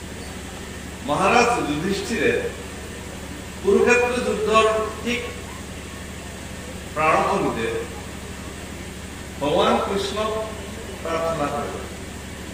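A young man speaks slowly in short phrases through a microphone and loudspeaker.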